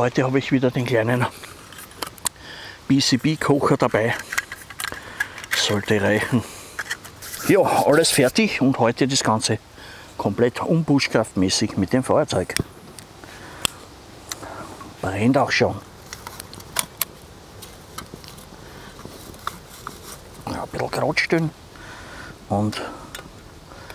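An older man talks calmly close by.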